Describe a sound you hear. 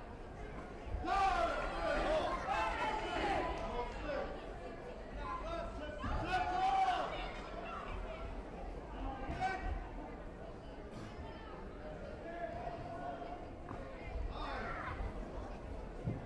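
Young female taekwondo fighters shout sharply while sparring in a large echoing hall.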